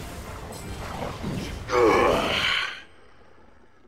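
Fiery magic blasts crackle and roar in a fierce battle.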